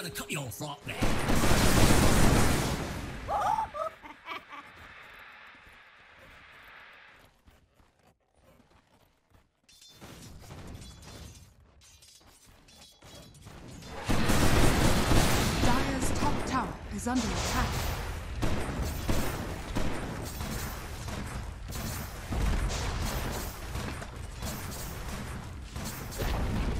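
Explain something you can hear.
Game battle effects clash and burst loudly.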